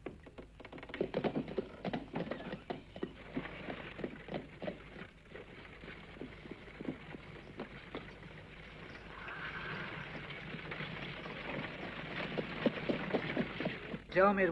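Horse hooves clop on a dirt street.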